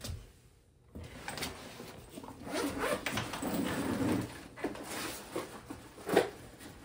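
A backpack rustles and bumps as it is lifted onto a table.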